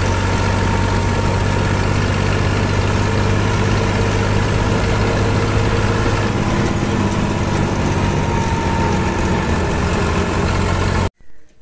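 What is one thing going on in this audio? A tractor engine rumbles steadily up close.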